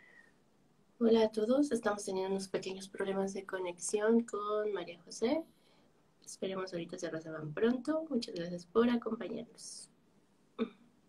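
A woman speaks calmly and close to a microphone, heard as if over an online call.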